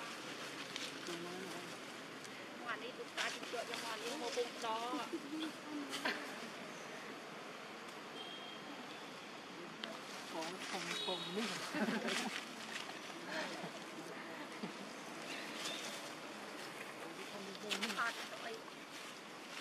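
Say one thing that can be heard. Monkeys squeak and chatter nearby.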